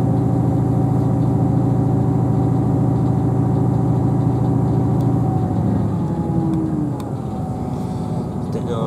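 A train's motor hums and slowly falls in pitch as the train slows.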